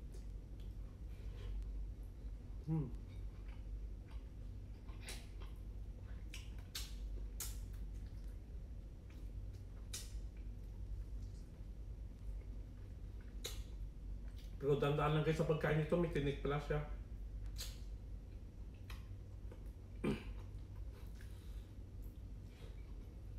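A man eats noisily, smacking his lips while chewing.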